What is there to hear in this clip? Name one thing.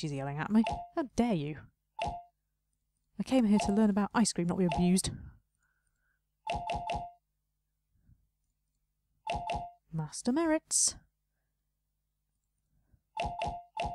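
Short bright chimes ring out as game pieces match.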